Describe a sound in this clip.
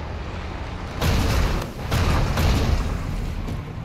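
A rifle fires loud bursts of shots.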